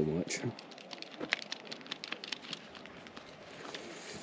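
Footsteps crunch on dry gravel.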